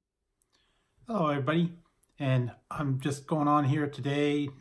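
A middle-aged man speaks calmly close to the microphone.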